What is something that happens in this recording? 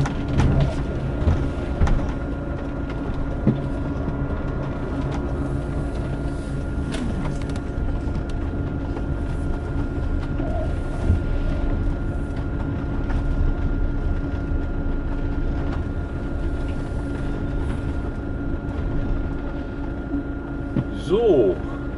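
Tyres roll and hiss over wet paving.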